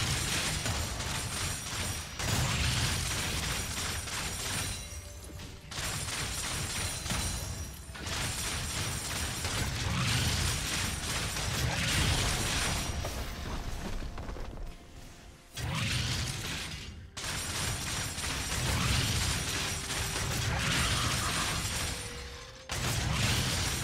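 Video game combat sound effects clash and blast.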